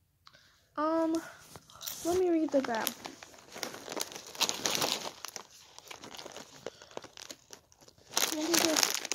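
A young woman crunches on a crispy snack.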